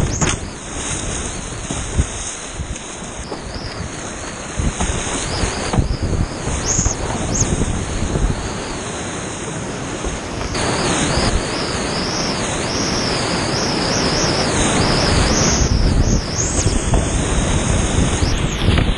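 A paddle splashes into rushing water.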